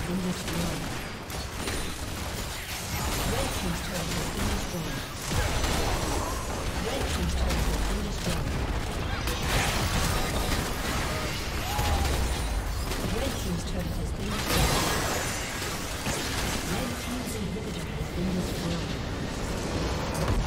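Magic blasts crackle and boom in a fast fight.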